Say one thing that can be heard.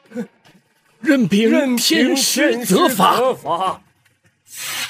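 An older man speaks emotionally, pleading in a strained voice.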